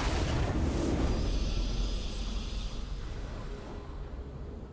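A triumphant game victory fanfare plays and fades.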